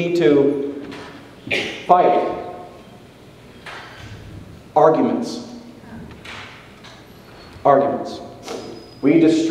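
A man speaks calmly through a microphone in an echoing hall, pausing between phrases.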